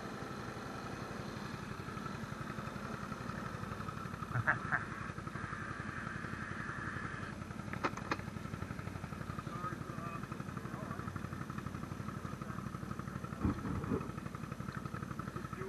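A quad bike engine idles with a steady, rattling throb.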